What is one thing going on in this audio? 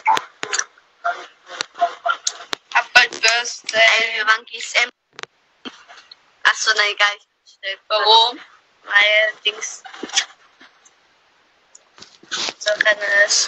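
A young woman talks with animation close to a phone's microphone.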